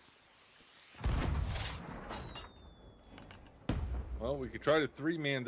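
A firework bursts with a loud bang.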